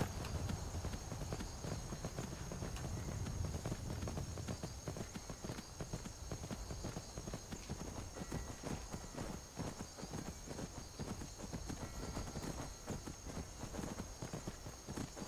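Horse hooves clop steadily on a path.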